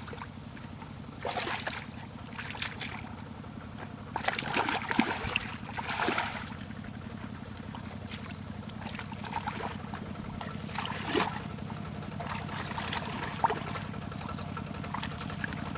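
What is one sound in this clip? Feet slosh through shallow muddy water.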